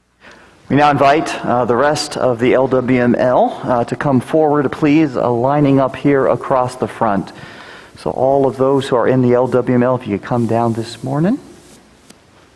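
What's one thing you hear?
An elderly man reads aloud steadily through a microphone in an echoing room.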